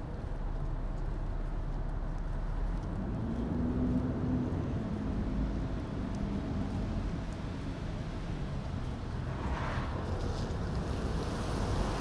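Traffic rumbles steadily.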